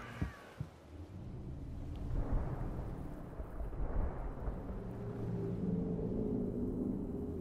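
Sand rumbles and shifts as something huge rises from the ground.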